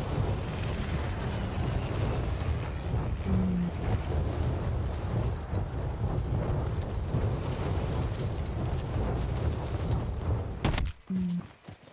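Wind rushes loudly past during a freefall.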